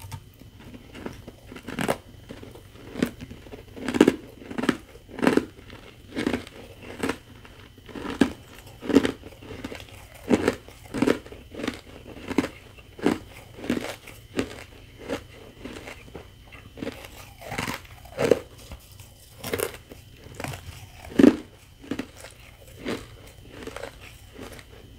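Crushed ice crackles and rustles under fingers.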